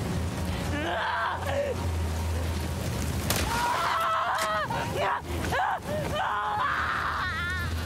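A creature shrieks in pain.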